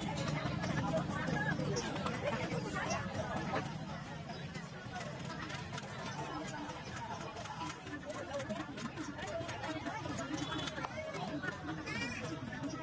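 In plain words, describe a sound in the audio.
Women talk nearby.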